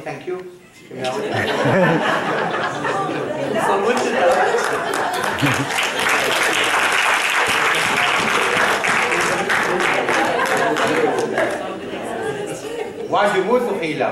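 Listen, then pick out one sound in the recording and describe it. A large audience laughs loudly and heartily.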